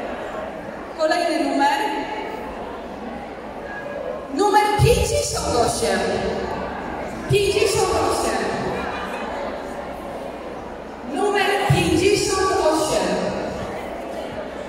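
A woman speaks loudly into a microphone through loudspeakers in a large echoing hall.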